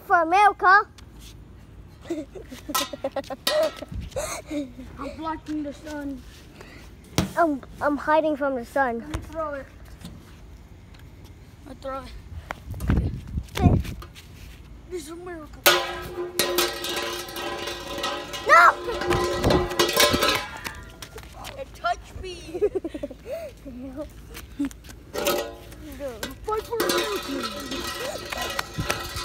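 A child talks with animation close by.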